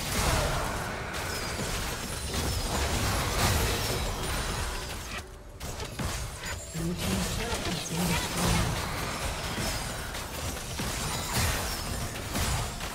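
Magic spells whoosh and crackle in a fast fight.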